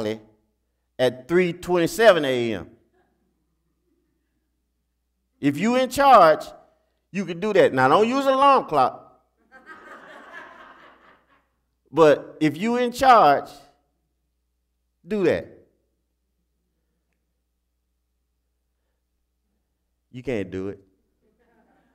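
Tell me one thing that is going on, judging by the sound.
A man preaches through a microphone in short, emphatic phrases with long pauses.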